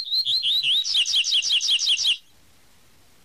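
A small bird sings a fast, high series of chirping notes, then falls silent.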